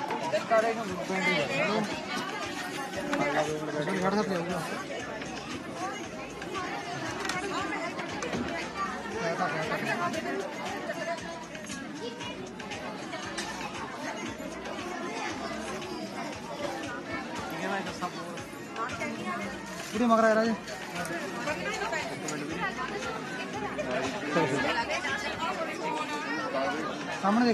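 Several women talk and laugh together nearby.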